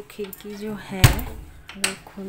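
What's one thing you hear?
A window latch clicks open.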